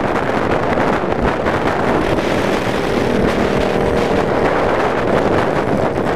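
Another motorcycle passes close by with a loud engine.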